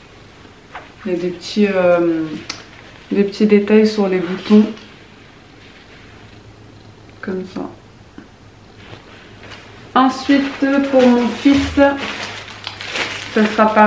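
A young woman speaks calmly and clearly close to a microphone.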